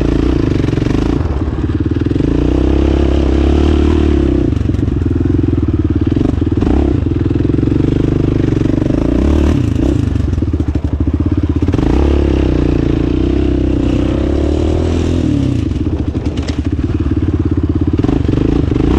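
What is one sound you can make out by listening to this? A quad bike engine roars loudly up close, revving up and down.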